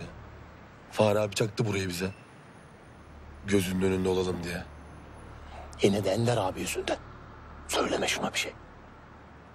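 A second man answers calmly, close by.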